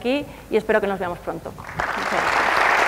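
A young woman speaks through a microphone in a large hall.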